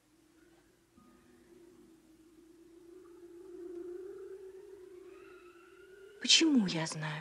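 A harp plays softly.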